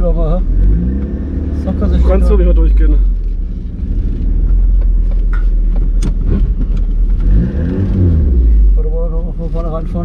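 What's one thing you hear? A car engine revs up and then settles.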